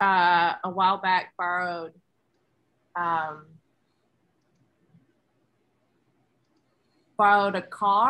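A woman speaks with animation over an online call, in short bursts.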